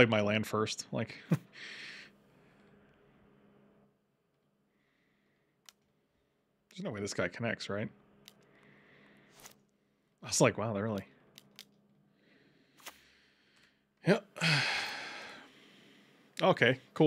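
A man talks with animation close to a microphone, in short bursts with pauses.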